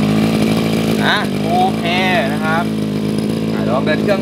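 A young man talks loudly over the engine.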